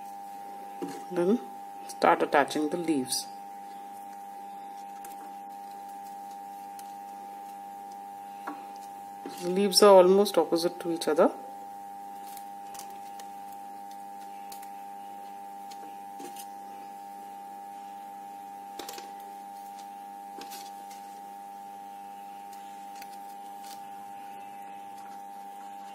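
Paper tape rustles softly as hands wrap it around a thin wire stem.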